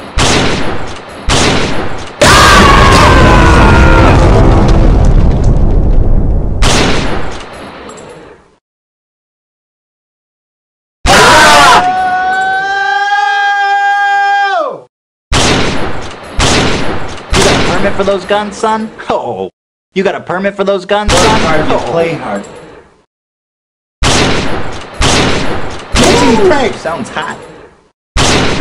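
A sniper rifle fires loud shots that boom and echo.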